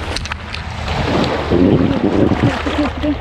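Waves wash up onto the sand.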